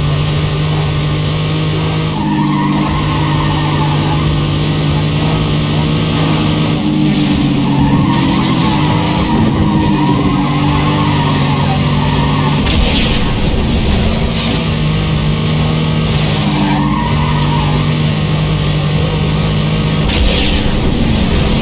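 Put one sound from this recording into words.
A racing car engine roars at high revs, rising and falling in pitch.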